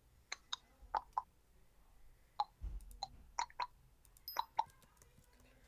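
Soft game clicks tick as menu items are picked.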